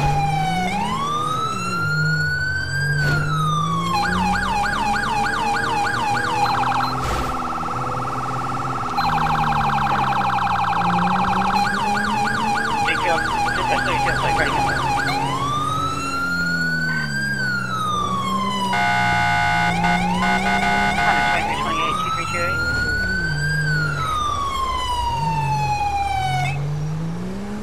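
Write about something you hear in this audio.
A police siren wails, then yelps rapidly, then switches to a fast high-low warble.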